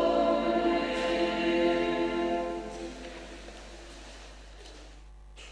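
A pipe organ plays a sustained chord that dies away in a large echoing hall.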